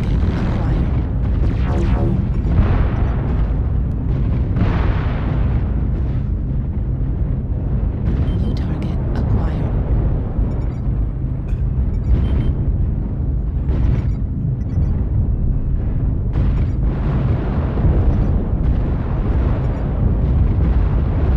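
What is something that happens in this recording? A low, heavy mechanical rumble drones on steadily.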